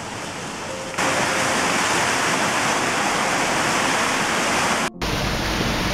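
A fountain splashes steadily close by.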